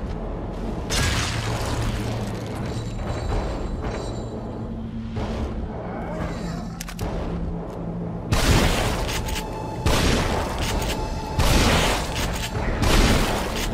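A large creature growls and roars loudly.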